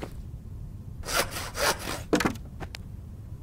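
A hand saw cuts through wood in a few quick strokes.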